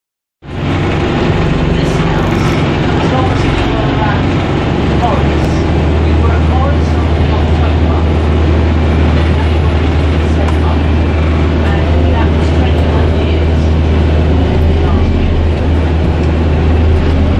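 A bus engine rumbles steadily from inside.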